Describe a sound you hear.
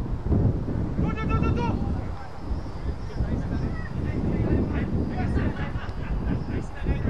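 A man shouts from across the field.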